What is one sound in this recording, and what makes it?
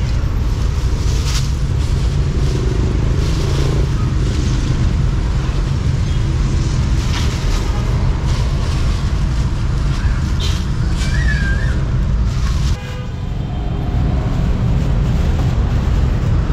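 Plastic bags rustle and crinkle.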